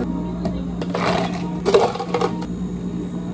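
Ice cubes clatter into plastic cups.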